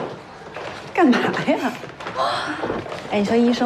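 A young woman laughs and speaks brightly close by.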